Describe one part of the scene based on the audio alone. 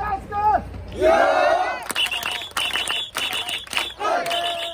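A crowd of men shouts and cheers together.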